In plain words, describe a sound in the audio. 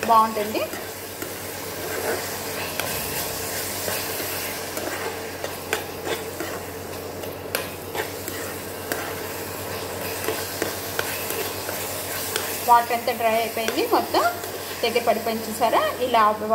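A metal spoon scrapes and taps against a pan.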